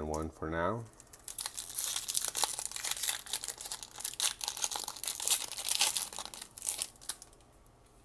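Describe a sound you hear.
Foil wrapping crinkles and tears as a pack is ripped open.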